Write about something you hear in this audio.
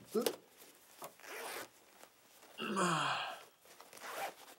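A young man stretches and yawns loudly.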